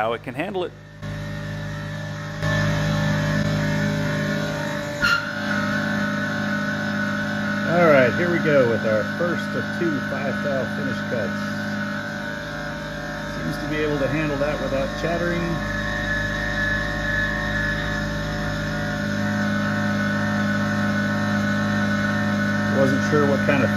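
A milling machine's spindle whirs steadily as its cutter grinds through metal.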